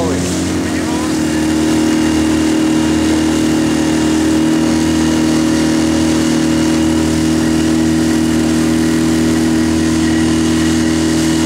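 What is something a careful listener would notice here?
An outboard motor drones steadily close by.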